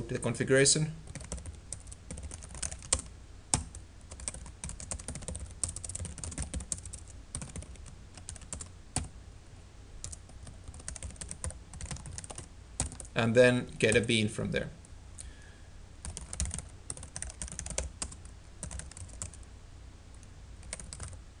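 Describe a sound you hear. Keys click on a computer keyboard in quick bursts.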